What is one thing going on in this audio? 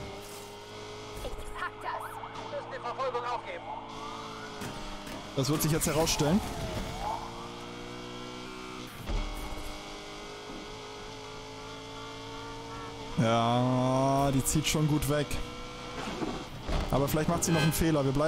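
A racing car engine roars and revs up through the gears.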